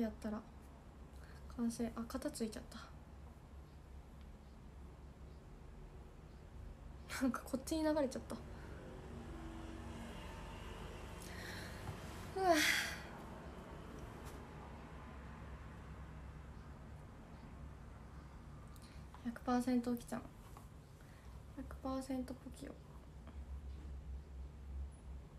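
A brush rustles through hair.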